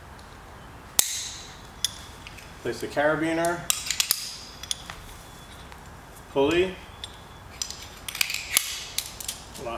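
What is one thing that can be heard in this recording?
A metal rope device clicks and rattles.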